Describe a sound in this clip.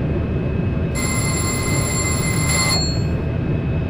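An electronic warning tone beeps inside a train cab.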